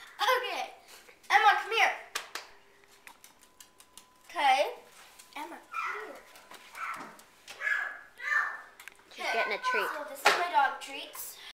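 A young girl talks and shouts excitedly close by.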